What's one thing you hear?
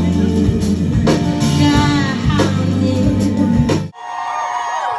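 A live band plays loudly in an echoing hall.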